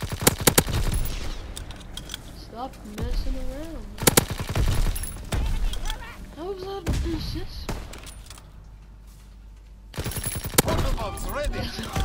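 A submachine gun fires rapid bursts of shots.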